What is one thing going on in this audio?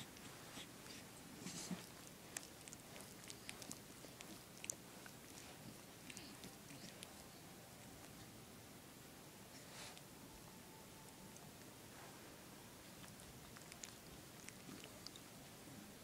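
A small dog licks and smacks its lips close by.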